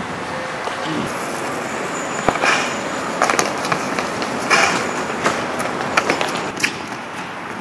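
Skateboard wheels roll over pavement with clicks.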